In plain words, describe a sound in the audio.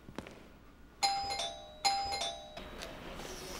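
A door keypad beeps as buttons are pressed.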